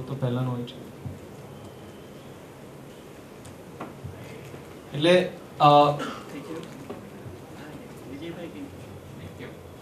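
A young man speaks calmly into a microphone, in short bursts with pauses.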